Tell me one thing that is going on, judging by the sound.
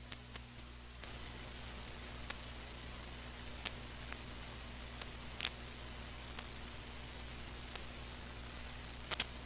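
Plastic toy cars click and rattle as they are dragged along.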